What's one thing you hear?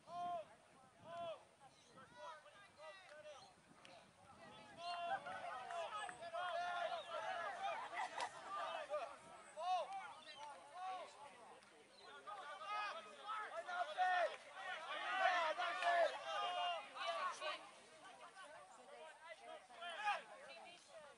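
Teenage boys shout to each other across an open field outdoors.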